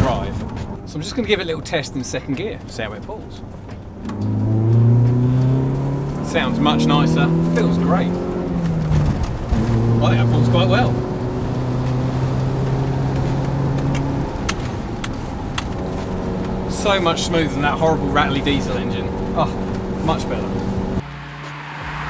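A van engine drones and revs up and down.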